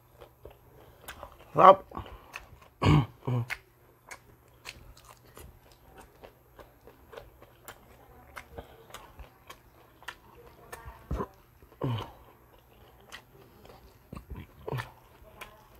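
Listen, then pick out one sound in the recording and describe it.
Crisp food crackles and crunches as a man's fingers pick at it.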